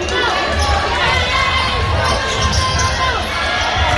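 A basketball thumps as it is dribbled on the floor.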